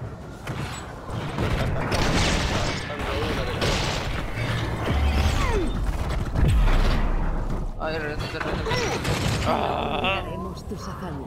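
Game sound effects of spells, blasts and weapon hits clash loudly.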